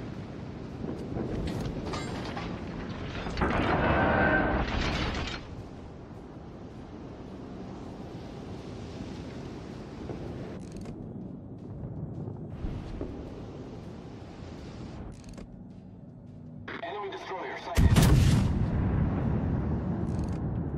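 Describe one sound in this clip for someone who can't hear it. Heavy ship guns fire with deep, loud booms.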